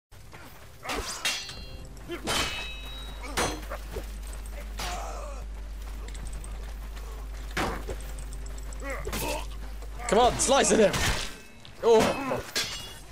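Swords clash and strike metal armor with sharp clangs.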